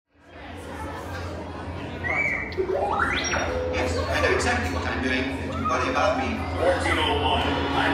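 A crowd of people murmurs and chatters in a large echoing hall.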